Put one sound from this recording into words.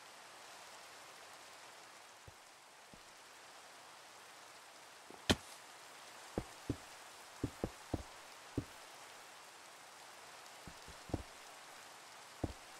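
Rain falls steadily with a soft hiss.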